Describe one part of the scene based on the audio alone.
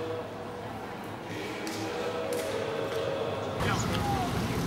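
People murmur softly in a large echoing hall.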